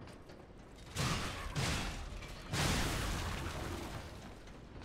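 A metal blade clashes and strikes with ringing impacts.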